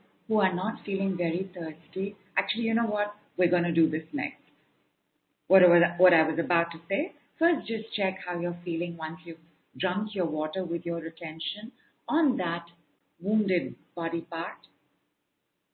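A woman speaks calmly and warmly into a microphone, close by.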